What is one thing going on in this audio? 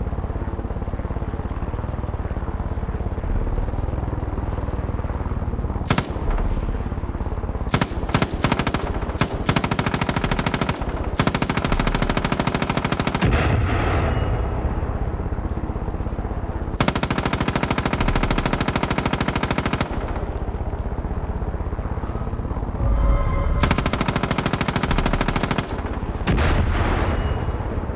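A helicopter's rotor whirs loudly throughout.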